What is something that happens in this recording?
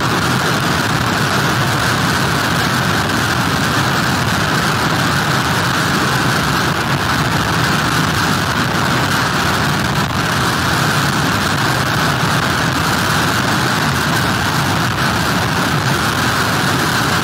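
Strong wind roars and buffets steadily outdoors in a storm.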